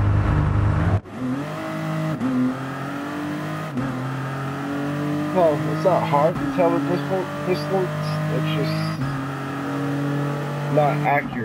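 A prototype race car engine accelerates, shifting up through the gears.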